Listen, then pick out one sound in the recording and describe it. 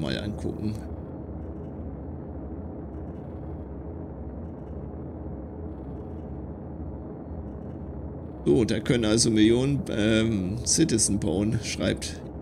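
A low spaceship engine hum drones steadily.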